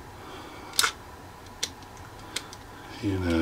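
A small plastic device clicks as it is handled.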